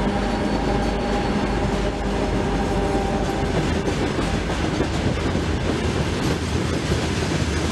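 Hopper wagons of a freight train clatter over the rails at a level crossing.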